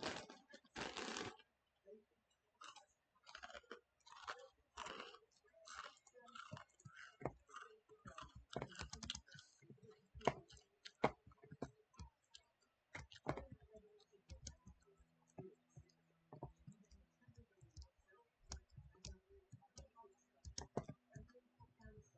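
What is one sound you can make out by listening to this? A young woman talks casually into a nearby microphone.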